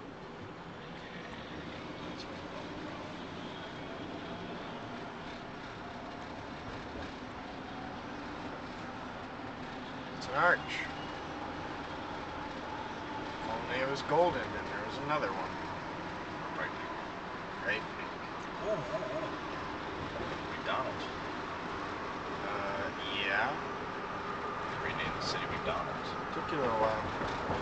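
A car drives steadily along a highway with a constant rumble of road noise.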